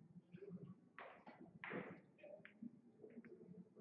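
Billiard balls knock together on a table.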